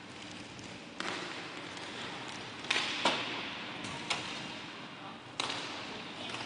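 Hockey sticks clack sharply against a ball and against each other.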